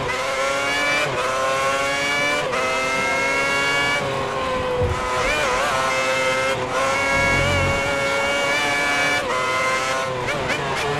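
A racing car engine screams at high revs, rising in pitch and dropping sharply as the gears shift.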